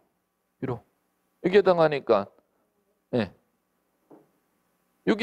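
A middle-aged man lectures with animation through a microphone, in short bursts of speech.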